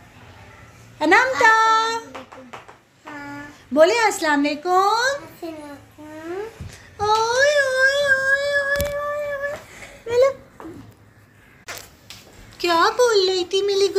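Young girls talk and sing close by, in high voices.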